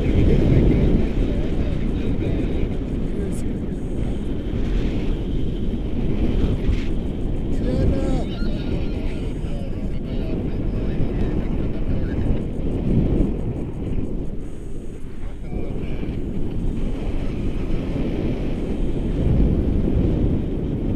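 Strong wind rushes past a microphone outdoors.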